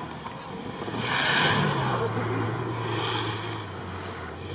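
Tyres spin and spray sand loudly.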